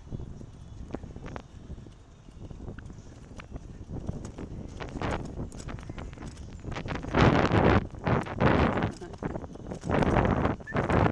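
Bicycle tyres rumble steadily over a paved path.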